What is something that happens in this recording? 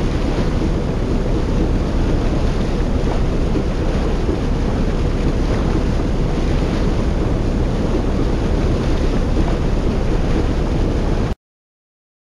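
Water splashes against boat hulls.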